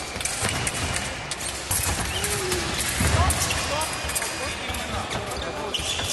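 Fencing blades clash and click sharply in a large echoing hall.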